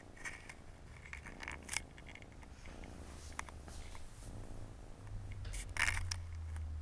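A cat licks a kitten with soft wet smacking sounds.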